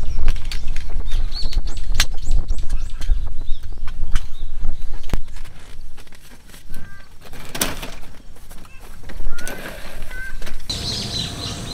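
Metal poles and a folding cot clatter and click as they are set up.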